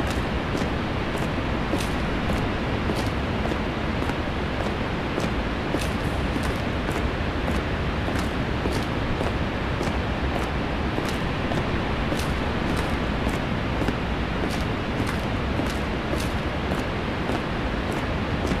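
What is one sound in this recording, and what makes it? Footsteps tap steadily on concrete.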